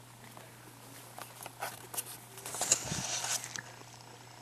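Fur brushes and rustles loudly right against the microphone.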